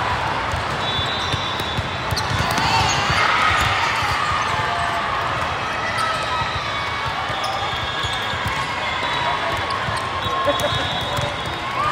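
A crowd murmurs and cheers throughout a large echoing hall.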